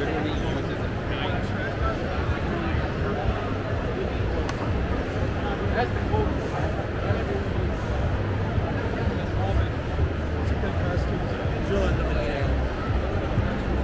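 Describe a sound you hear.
A crowd chatters and murmurs throughout a large echoing hall.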